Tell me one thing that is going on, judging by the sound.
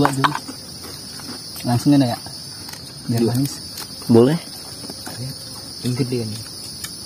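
A young man talks casually in short bursts, close by.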